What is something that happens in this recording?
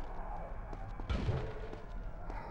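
A sword slashes through the air with a sharp whoosh.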